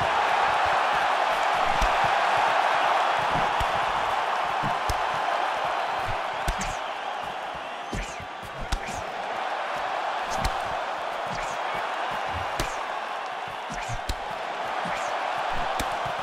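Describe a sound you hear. A crowd murmurs and cheers steadily in a large arena.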